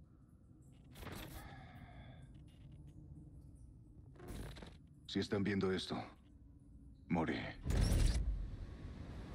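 A man speaks slowly in a low, grave voice.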